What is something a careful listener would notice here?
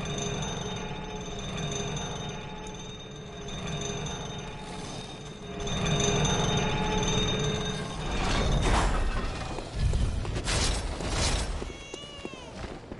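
A heavy metal lift rumbles and creaks as it moves.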